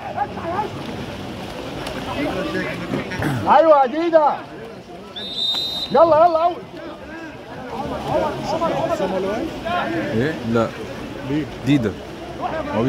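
Swimmers splash and churn the water.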